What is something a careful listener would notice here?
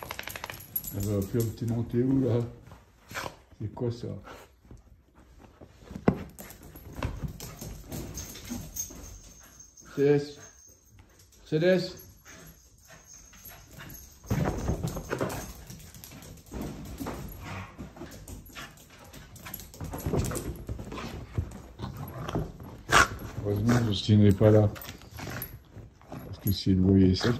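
Dogs growl and snarl playfully up close.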